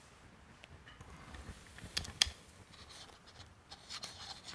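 Metal parts click as a man handles a device.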